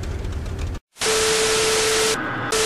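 Static hisses loudly and evenly.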